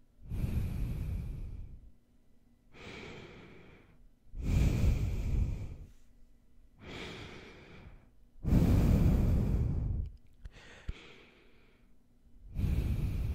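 A man breathes and sniffs through his nose close to a microphone, in long bursts.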